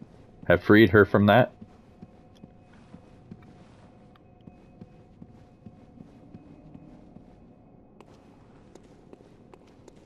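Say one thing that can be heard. Footsteps tap lightly on a hard floor.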